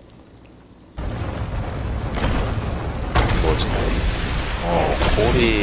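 A stone floor cracks and crumbles.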